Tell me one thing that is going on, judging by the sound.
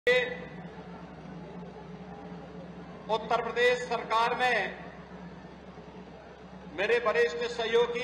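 A man speaks forcefully into a microphone over a loudspeaker, with echo.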